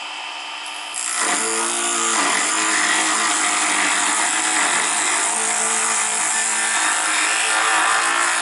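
A chisel scrapes against spinning wood.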